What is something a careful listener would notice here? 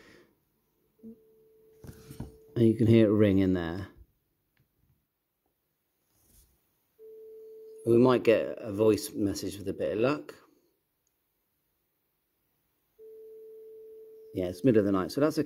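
A phone plays a steady ringing tone through its speaker, repeating with pauses.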